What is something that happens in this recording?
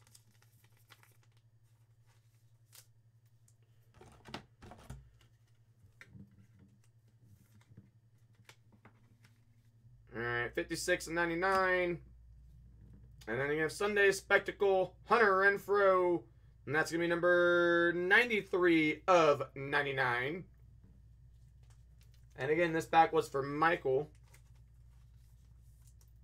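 Plastic card sleeves crinkle and rustle in hands.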